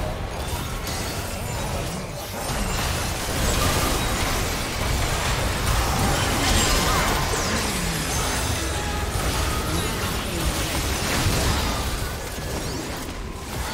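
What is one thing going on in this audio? Magic blasts and clashing spell effects burst rapidly in a fast-paced game fight.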